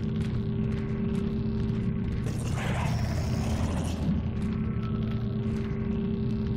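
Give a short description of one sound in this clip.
Heavy boots thud slowly on a metal floor.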